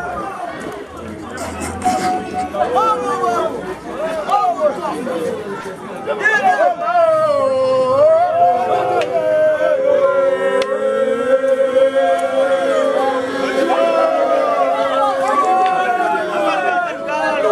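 A crowd of men and women sing and chant loudly nearby, outdoors.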